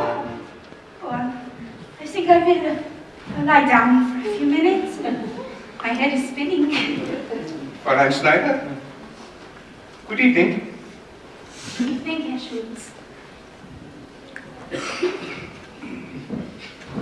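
A young man speaks with feeling in an echoing hall.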